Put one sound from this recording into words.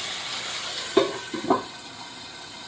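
A metal lid clanks onto a pan.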